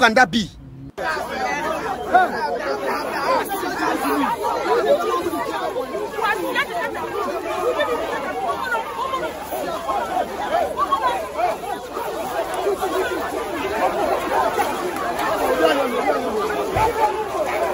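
A crowd shouts and chatters excitedly outdoors.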